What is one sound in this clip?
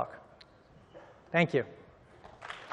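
A man speaks into a microphone in a large hall.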